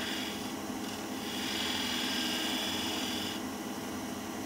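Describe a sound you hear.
A chisel scrapes against spinning wood with a rough hiss.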